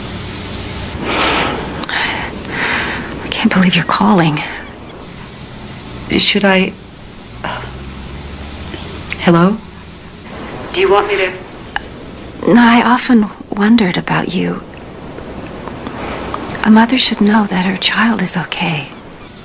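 A woman speaks calmly into a phone, close by.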